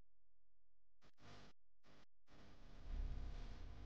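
Plastic packaging crinkles as hands handle it.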